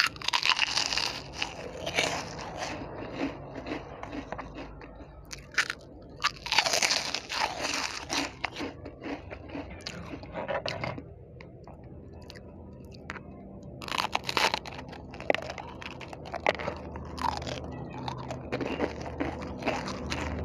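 A woman crunches crispy snacks loudly, very close to a microphone.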